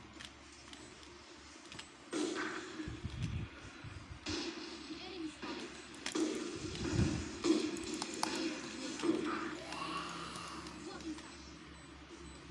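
A video game plays electronic sound effects.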